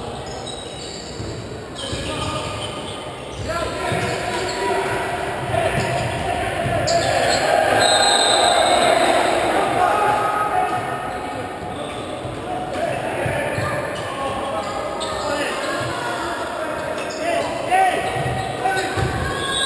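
A crowd of spectators cheers and chatters in a large echoing hall.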